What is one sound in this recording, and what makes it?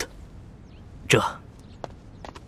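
A man answers briefly nearby.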